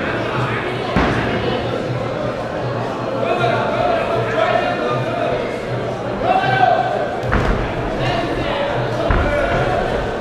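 Boxing gloves thud against a boxer's body and head.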